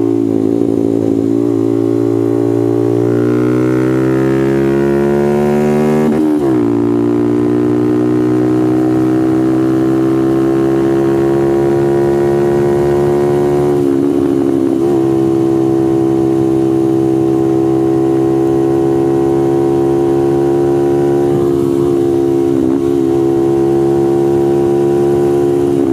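A motorcycle engine roars loudly close by, rising in pitch as it speeds up and dropping as it shifts gears.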